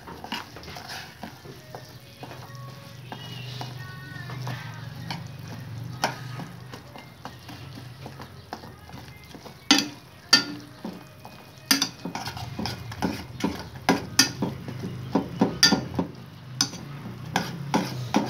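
A metal spoon scrapes and clinks against a pot.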